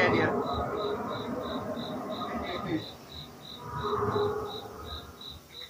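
A dinosaur model growls and roars loudly through a loudspeaker.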